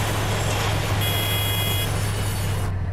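A locomotive horn sounds briefly.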